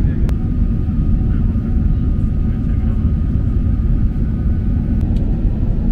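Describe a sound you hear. An airliner's engines roar with a deep, steady rumble inside the cabin.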